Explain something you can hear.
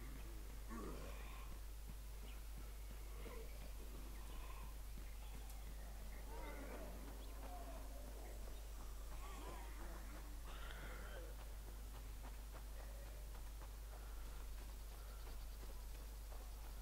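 Footsteps run quickly over dirt and pavement.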